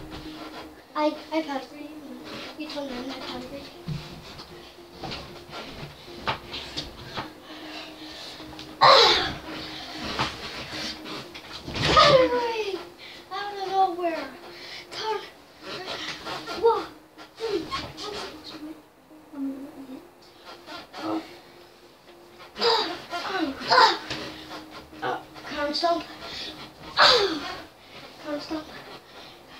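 A young boy talks with excitement close by.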